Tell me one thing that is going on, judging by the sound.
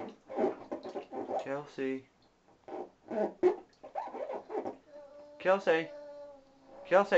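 Water splashes softly in a small tub.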